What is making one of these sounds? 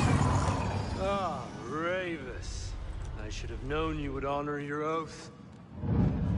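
A man speaks in a low, menacing voice.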